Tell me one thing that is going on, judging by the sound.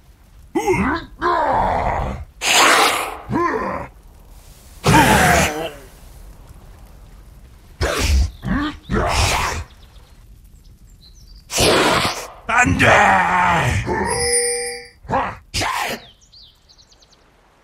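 Magic spells whoosh and crackle during a battle.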